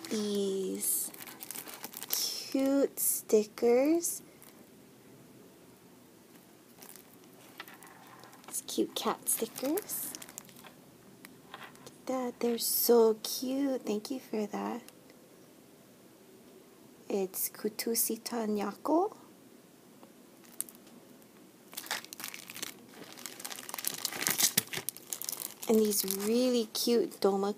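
Plastic sticker packets crinkle and rustle in someone's hands.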